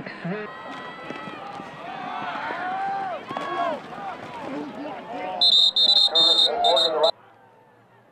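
A crowd cheers from the stands.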